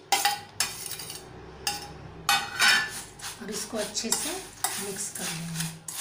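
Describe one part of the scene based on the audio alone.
A spoon stirs and clinks against the side of a metal bowl.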